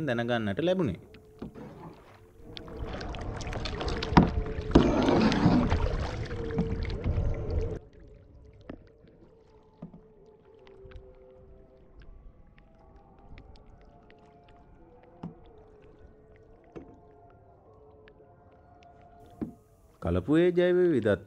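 A man calls out from a distance across open water.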